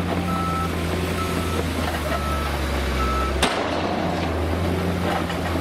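Sand and earth pour from a tipping truck bed.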